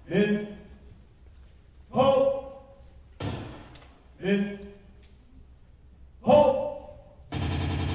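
A woman speaks lines loudly, heard from across a large echoing hall.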